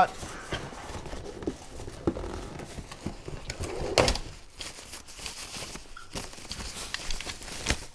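Cardboard and plastic wrapping rustle and crinkle as a package is opened.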